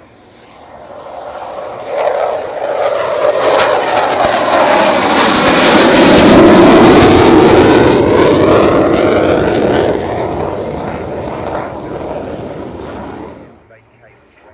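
A jet engine roars loudly as a fighter jet flies past, with the roar sweeping down in pitch and then fading.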